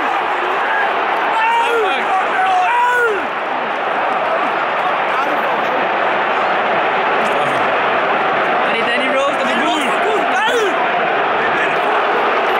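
Several young men chatter and shout nearby.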